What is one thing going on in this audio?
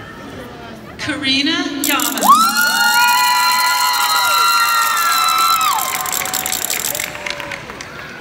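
A crowd cheers and whoops loudly, then settles.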